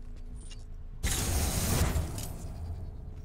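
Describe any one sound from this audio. A laser gun fires with a loud, crackling burst.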